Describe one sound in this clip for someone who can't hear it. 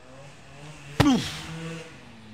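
A heavy sandbag thumps onto the ground.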